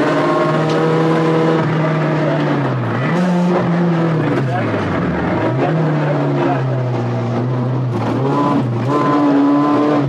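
A rally car engine roars at full throttle inside the car.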